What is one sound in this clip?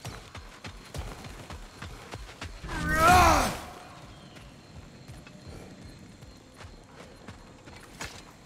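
Heavy footsteps crunch on stone and dirt.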